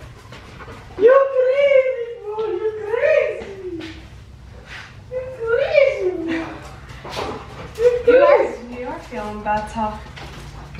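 A young woman speaks with animation, close by, in a high voice.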